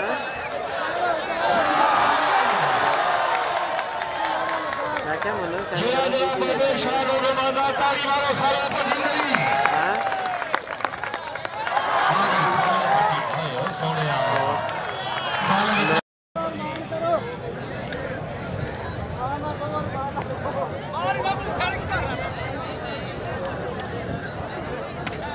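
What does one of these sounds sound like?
A large outdoor crowd cheers and shouts excitedly.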